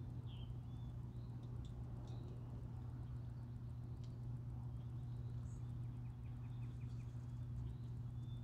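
Water rushes steadily in the distance.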